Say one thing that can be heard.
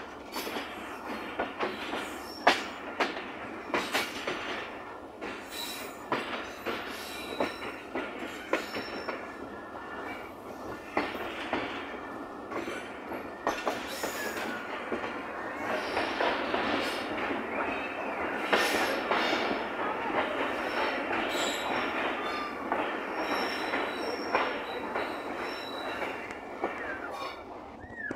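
A train rattles and clacks steadily along the track.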